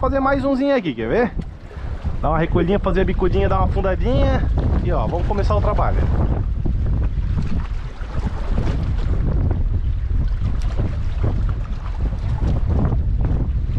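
Wind buffets loudly outdoors by open water.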